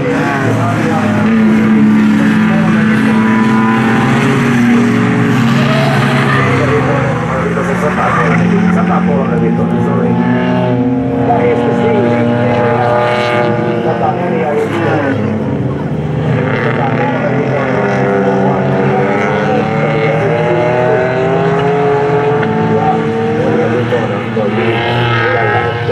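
Racing car engines roar and rev loudly as the cars speed around a track.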